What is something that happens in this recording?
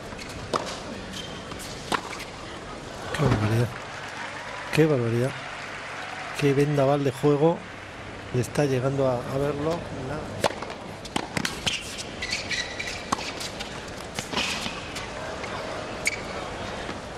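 Tennis racquets strike a ball in sharp pops, back and forth.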